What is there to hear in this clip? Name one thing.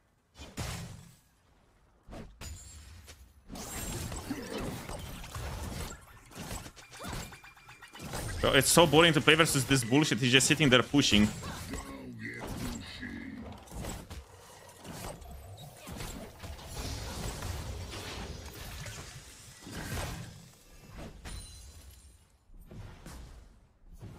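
Game combat effects clash and burst.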